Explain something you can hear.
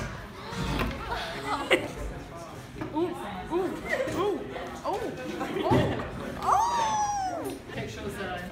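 Young women talk and laugh with animation close by.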